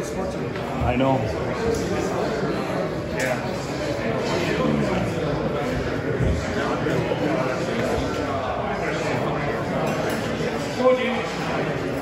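A man gives instructions in a raised voice, close by.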